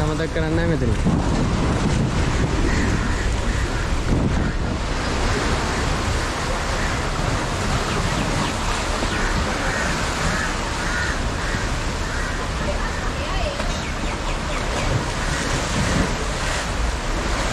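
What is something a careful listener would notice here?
Wind blows outdoors, rushing steadily.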